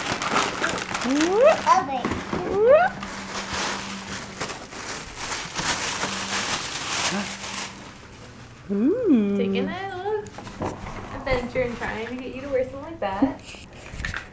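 A toddler babbles and squeals excitedly.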